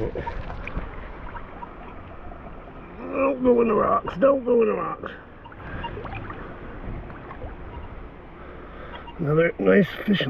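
A hand swishes through shallow water.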